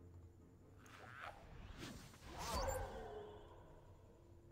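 A magical spell effect whooshes and chimes in a game.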